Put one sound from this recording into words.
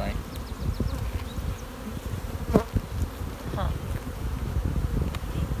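Bees buzz steadily close by.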